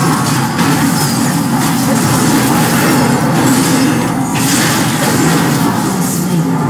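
Game spell effects crackle and burst during a fight.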